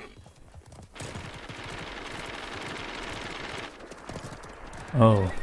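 A horse gallops with thudding hooves.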